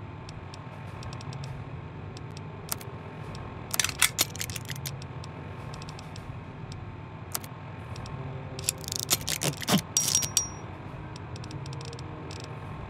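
Soft electronic clicks and beeps sound as menu items are selected.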